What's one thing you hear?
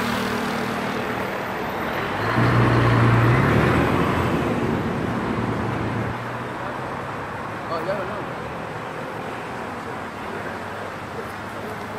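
A river rushes past outdoors with a steady roar.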